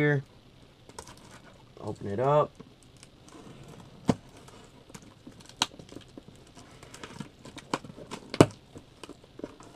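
Packing tape crackles and tears as it is peeled off a cardboard box.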